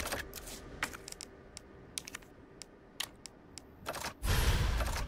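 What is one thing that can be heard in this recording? Menu selections click sharply in quick succession.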